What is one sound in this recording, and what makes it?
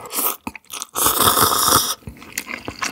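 A man slurps a drink.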